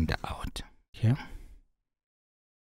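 A man speaks calmly into a microphone, close up.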